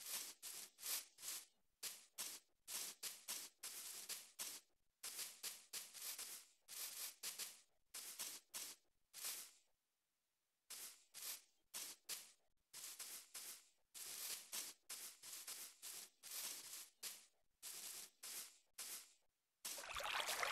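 Footsteps thud softly on grass in quick runs.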